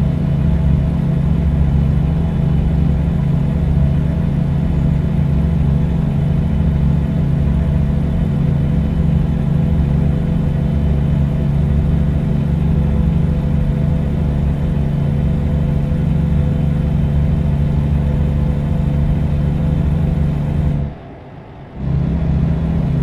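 A truck engine drones steadily and loudly, with a low rumble.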